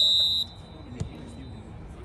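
A soccer ball is kicked with a thud.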